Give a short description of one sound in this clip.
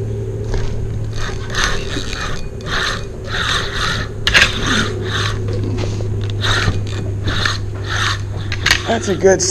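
A fishing reel clicks and whirs as its handle is cranked in quick bursts.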